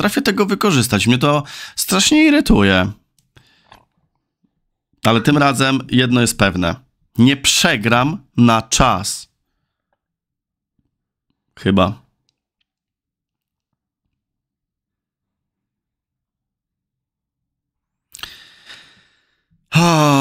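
A man talks calmly and closely into a microphone, in short bursts with pauses.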